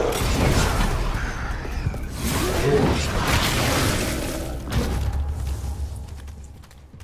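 A fiery explosion roars and crackles.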